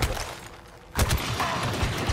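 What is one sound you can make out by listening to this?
A sword strikes and clashes.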